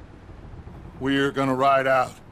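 A man speaks in a low, gruff voice, close by.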